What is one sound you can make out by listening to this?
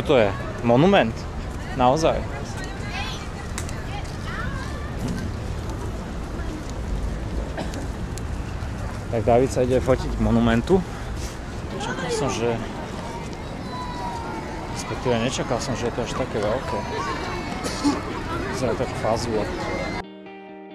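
A crowd chatters outdoors in the distance.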